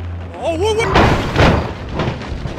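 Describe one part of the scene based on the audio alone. A car crashes with a loud bang and crunch.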